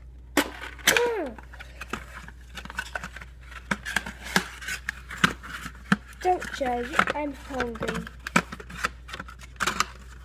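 A cardboard box rustles in someone's hands.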